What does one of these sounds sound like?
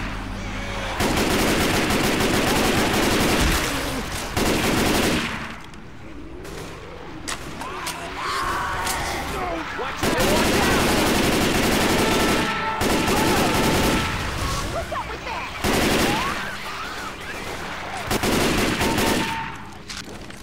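An automatic rifle fires in long, rapid bursts.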